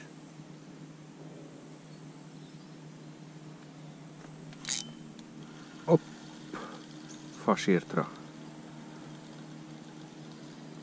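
Water laps gently against the side of a small boat.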